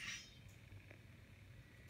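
Static hisses from a tablet's speaker.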